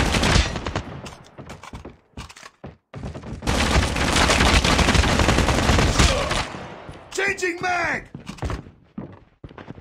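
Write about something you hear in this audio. A gun clicks and clatters as it is reloaded.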